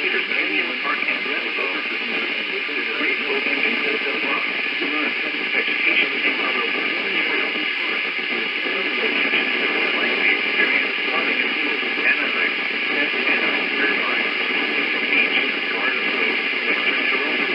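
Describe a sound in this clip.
Heavy rain pours and patters steadily outside a window.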